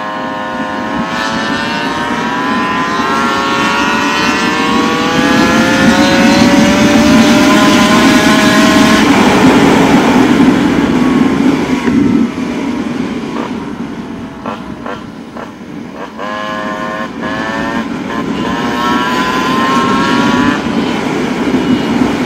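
A motorcycle engine hums close by, its pitch sliding down and then rising again as it shifts gears.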